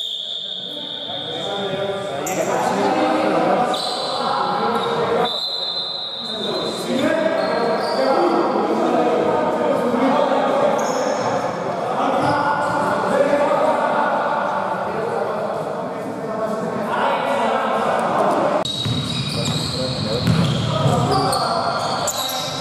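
Men call out to each other across an echoing hall.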